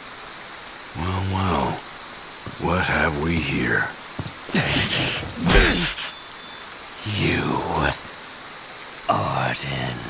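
A man with a deep voice speaks gruffly.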